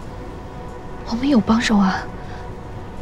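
A young man speaks briefly with an anxious, pleading tone, close by.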